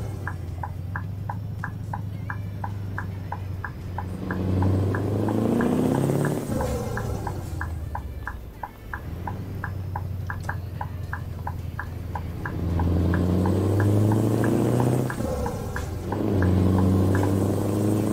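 A turn signal ticks rapidly and evenly.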